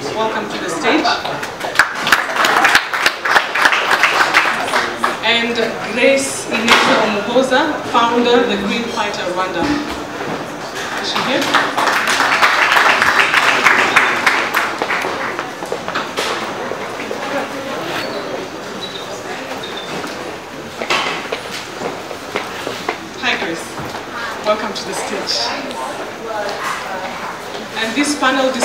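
A woman speaks into a microphone over loudspeakers in a reverberant space.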